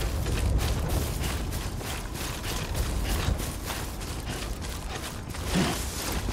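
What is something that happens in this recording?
Footsteps tread steadily through grass and soil.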